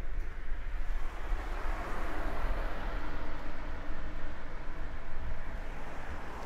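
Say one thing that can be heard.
A car drives past on the road nearby.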